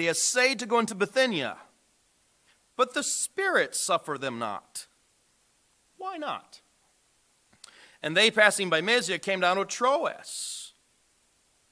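A man speaks calmly into a microphone in a large, echoing room.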